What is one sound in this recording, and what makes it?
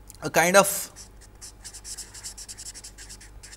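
A marker squeaks and scratches across a board.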